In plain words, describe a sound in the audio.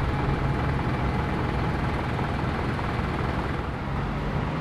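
A bus engine idles with a low hum.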